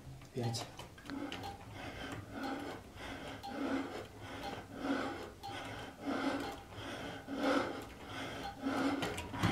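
A man breathes hard in a steady rhythm.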